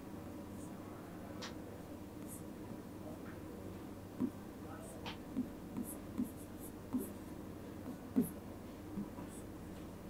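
A marker squeaks and taps as it writes on a board.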